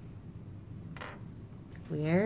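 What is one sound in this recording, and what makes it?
A clothespin clacks down on a wooden table.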